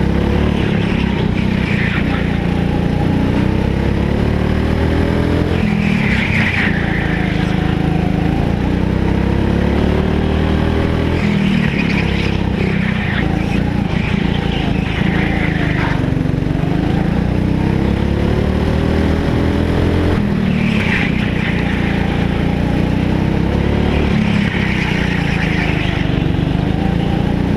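A go-kart engine buzzes loudly close by, rising and falling in pitch as the kart speeds up and slows through the turns.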